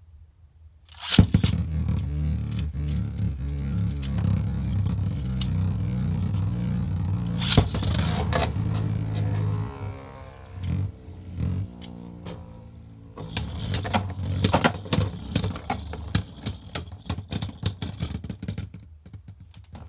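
Spinning tops whir and scrape against a plastic arena.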